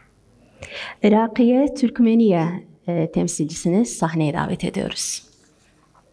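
A woman speaks through a microphone over loudspeakers in an echoing hall.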